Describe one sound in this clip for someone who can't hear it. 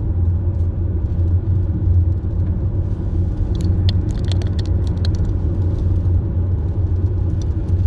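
A car drives steadily along a paved road, its engine and tyres rumbling low inside the cabin.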